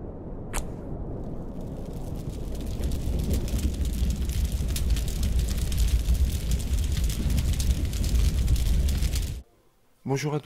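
Flames roar and crackle loudly.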